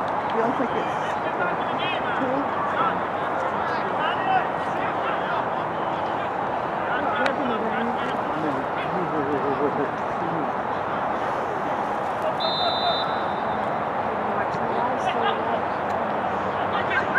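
Young men on the field shout to each other.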